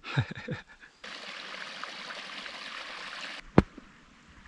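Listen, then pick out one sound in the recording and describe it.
Water trickles in a small stream.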